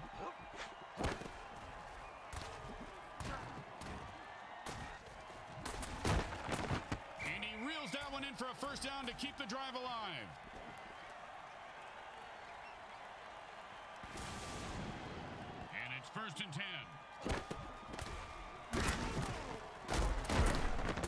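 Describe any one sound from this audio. Players collide with heavy thuds.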